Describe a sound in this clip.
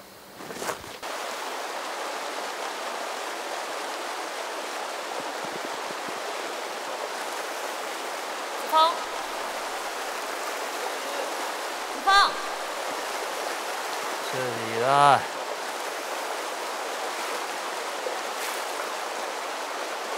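Water flows and babbles over rocks.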